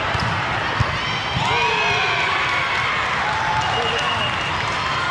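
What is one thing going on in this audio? Spectators chatter in the background of a large echoing hall.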